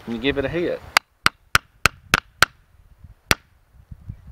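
A hammer strikes a metal punch several times in quick succession.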